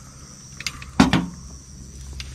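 A metal can is set down on a table with a knock.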